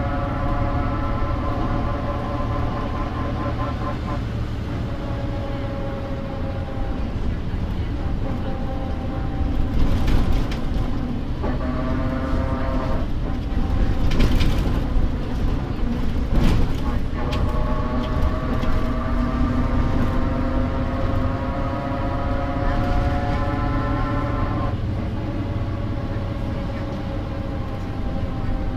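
A bus engine hums and whines as it changes gear.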